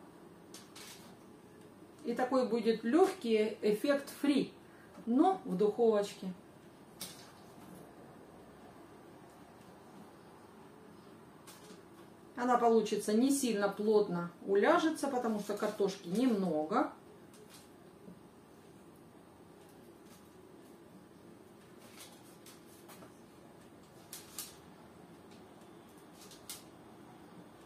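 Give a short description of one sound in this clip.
Food pieces rustle and tap into a baking tray.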